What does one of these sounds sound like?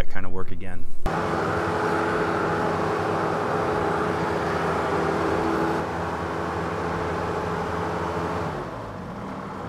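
A skid steer loader's engine runs with a steady drone.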